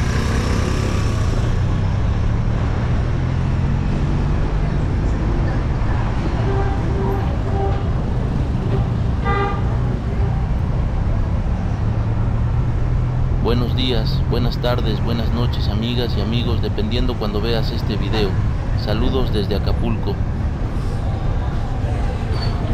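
A motorbike engine hums steadily nearby.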